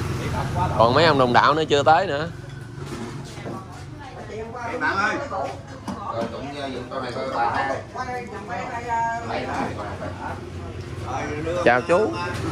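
Elderly men talk casually close by, outdoors.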